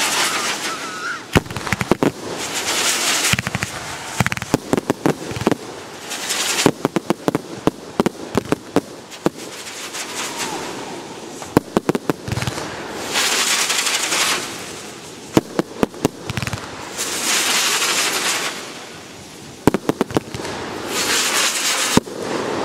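Fireworks crackle and fizz in long hissing showers.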